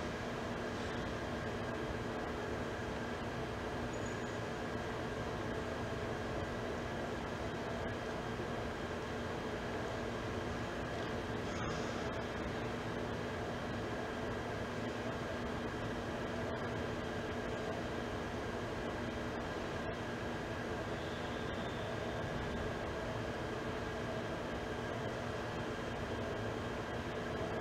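A large crowd murmurs quietly.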